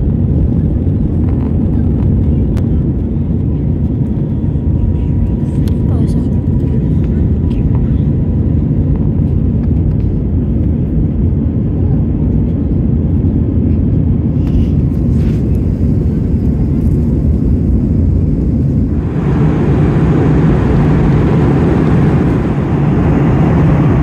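Jet engines roar steadily in a low, rushing drone.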